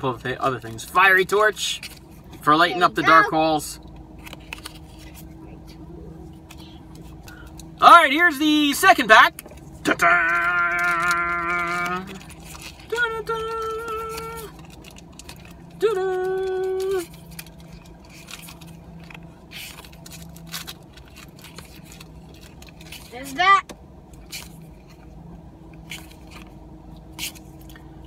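Trading cards rustle and flick in a man's hands.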